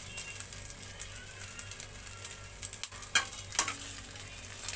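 A metal spatula scrapes and taps against a pan.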